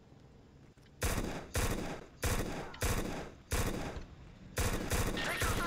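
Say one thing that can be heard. Gunfire bursts in rapid shots.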